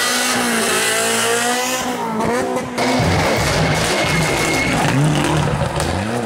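Tyres skid on tarmac.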